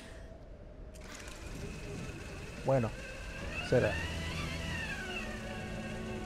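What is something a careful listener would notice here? A pulley whirs and hisses along a taut rope.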